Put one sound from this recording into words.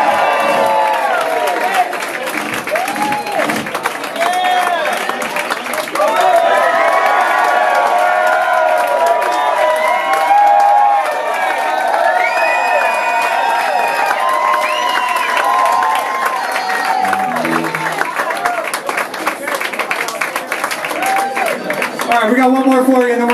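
A crowd cheers and whoops loudly in an echoing room.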